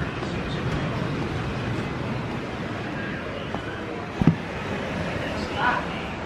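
Sandals slap on hard steps.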